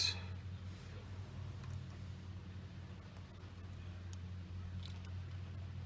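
A wrench clicks against a metal bolt.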